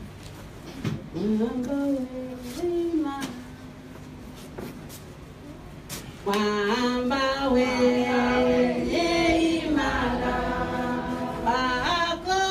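A woman sings into a microphone, heard over a loudspeaker in an echoing room.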